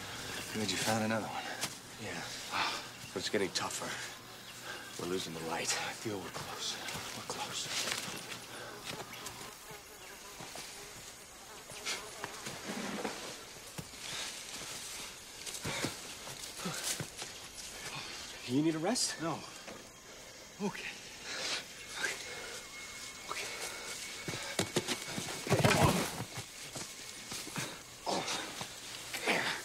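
Leaves and branches rustle as men push through dense undergrowth.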